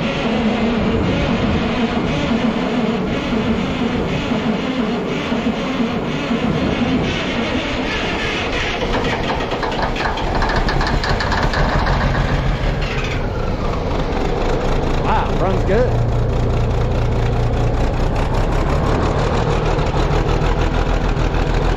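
A large diesel engine cranks and starts, then runs with a loud, rough rumble.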